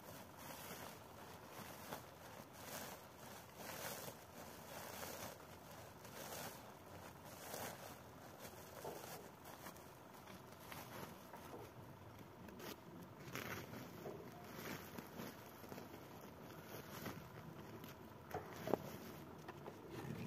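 A plastic sack rustles and crinkles as a man handles it.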